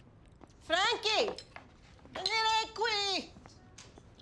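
A woman calls out loudly in a high, drawn-out voice.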